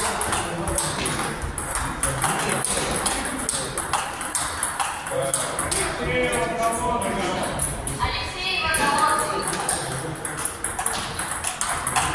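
A table tennis ball clicks back and forth between paddles and the table in a quick rally.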